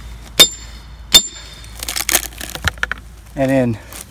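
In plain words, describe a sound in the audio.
Wood splits and cracks apart.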